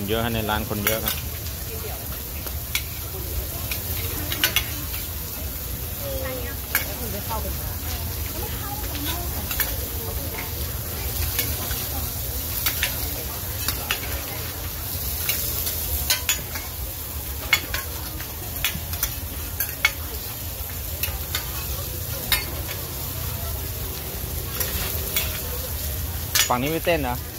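Metal spatulas scrape and clack against a hot griddle.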